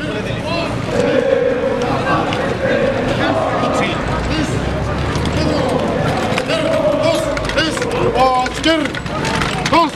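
A crowd of onlookers chatters and calls out nearby.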